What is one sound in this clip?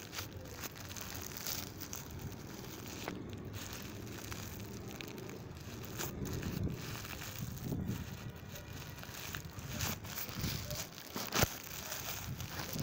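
A car tyre rolls slowly over gravelly ground with a low rumble.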